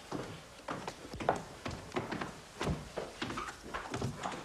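Footsteps thump down wooden stairs.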